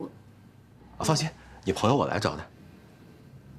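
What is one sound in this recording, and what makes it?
A young man speaks loudly with animation nearby.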